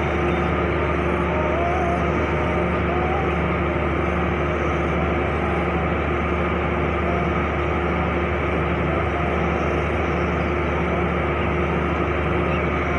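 A train's diesel engine idles nearby with a steady low hum.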